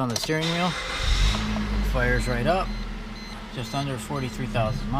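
A car engine starts and idles with a low rumble.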